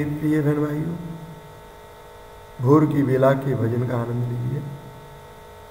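An elderly man chants slowly and close by in a low, steady voice.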